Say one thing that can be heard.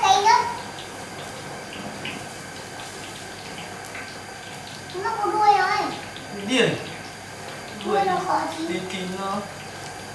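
A man scrapes a fish with a knife.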